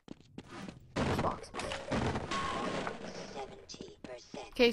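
A wooden crate is smashed and splinters.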